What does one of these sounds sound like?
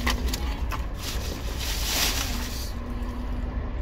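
A pressure washer hisses as water sprays onto a car.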